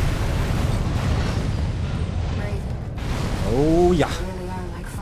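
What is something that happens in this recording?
A huge explosion roars and rumbles, then fades.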